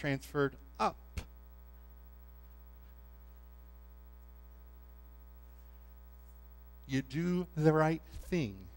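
A man speaks with animation through a microphone in a large room, with pauses.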